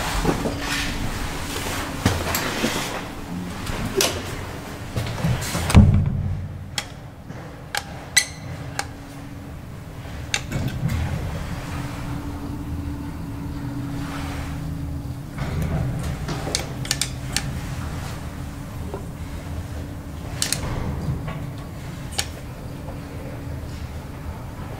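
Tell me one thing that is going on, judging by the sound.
A traction elevator hums as the car travels.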